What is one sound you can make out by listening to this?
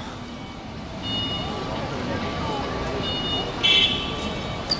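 People chatter nearby outdoors.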